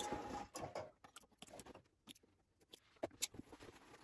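Scissors snip thread.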